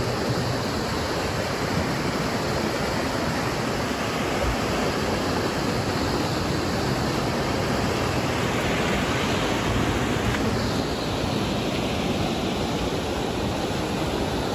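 A river rushes steadily over rocks nearby.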